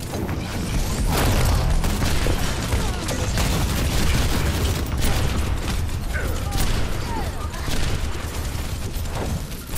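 Explosions boom with deep rumbling.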